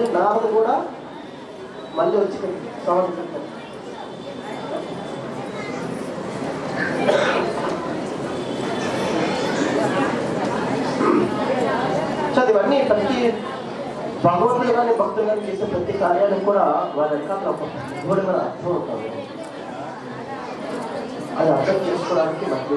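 A man speaks calmly into a microphone, heard over a loudspeaker.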